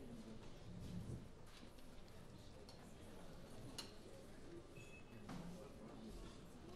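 A pianist plays a grand piano.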